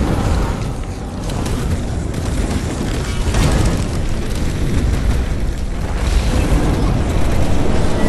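Magic blasts crackle and boom in rapid bursts.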